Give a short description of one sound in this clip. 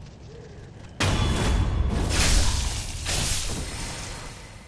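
A sword slashes with a loud swoosh and impact.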